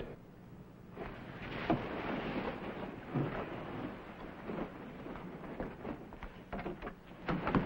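Bedsheets rustle as a woman sits up.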